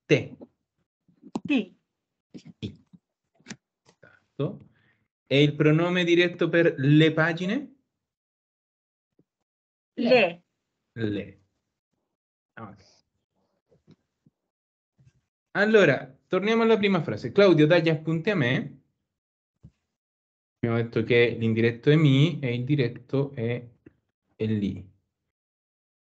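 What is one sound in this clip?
A woman speaks calmly through an online call, explaining in bursts with pauses.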